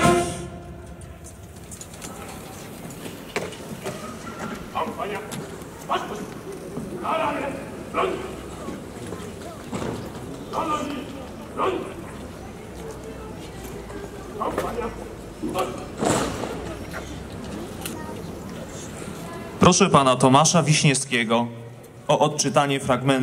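A brass band plays outdoors.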